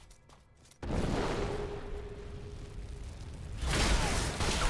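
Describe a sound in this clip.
Fire roars and crackles.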